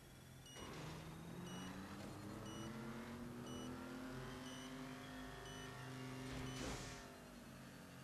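A car engine revs and rises in pitch.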